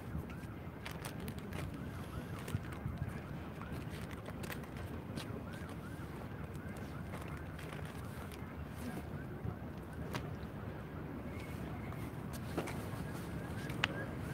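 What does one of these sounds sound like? A jacket rustles and brushes close by.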